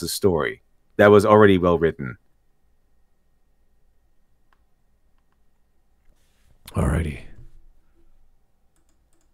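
A young man speaks calmly into a close microphone, in short bursts with long pauses.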